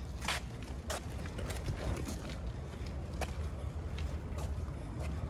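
A large plastic-wrapped bundle scrapes and rustles as it is dragged along pavement.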